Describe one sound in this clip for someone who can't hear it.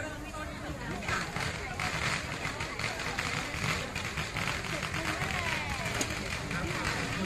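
Fireworks crackle and pop nearby.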